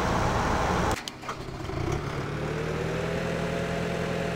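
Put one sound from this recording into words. A tractor engine rumbles.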